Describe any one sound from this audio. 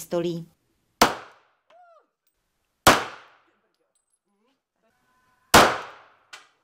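Pistol shots ring out loudly, each with a short echo.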